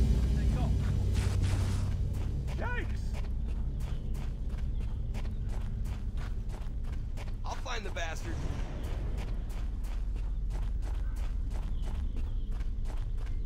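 Footsteps thud steadily on grass.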